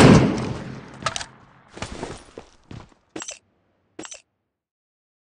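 Short rustling clicks sound as gear is picked up.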